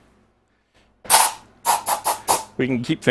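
An air gun hisses in short bursts.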